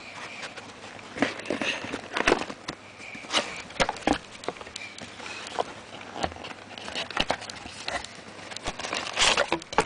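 Fabric rustles and rubs right up close, with scattered bumps and scrapes.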